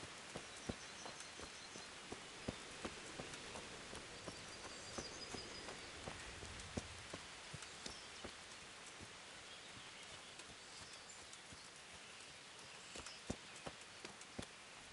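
Footsteps crunch on gravel and grass.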